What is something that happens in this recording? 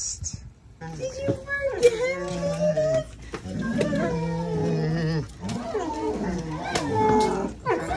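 Dogs whine and yelp excitedly.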